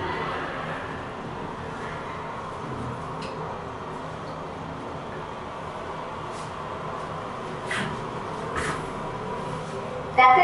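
A lift hums steadily as it moves.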